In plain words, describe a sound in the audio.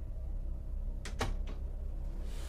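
A door handle clicks.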